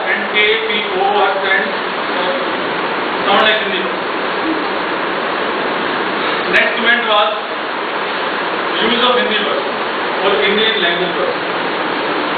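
A man speaks with animation, heard from a little distance.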